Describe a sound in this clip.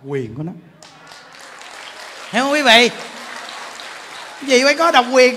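A large crowd laughs and claps.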